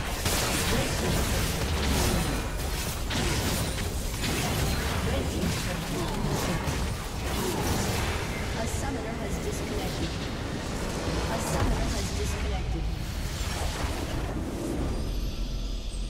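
Game spell effects crackle and explode in a busy battle.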